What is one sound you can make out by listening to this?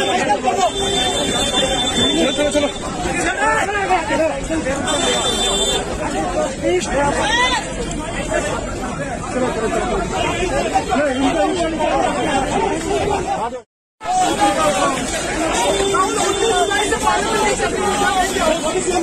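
A crowd of men talk and shout all at once outdoors, close by.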